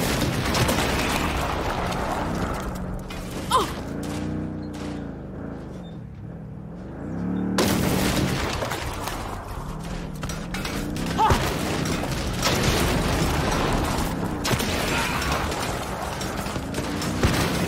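Explosions boom and crackle close by.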